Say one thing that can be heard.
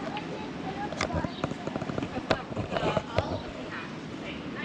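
Stroller wheels rattle over a pavement close by.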